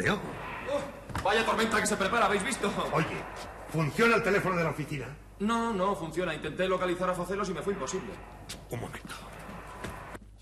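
A man speaks loudly and animatedly.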